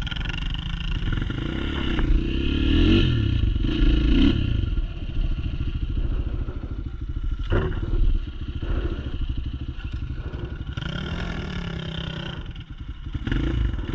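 Tyres crunch over dirt and twigs.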